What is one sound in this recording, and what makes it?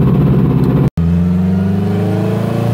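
A car engine revs up, rising in pitch.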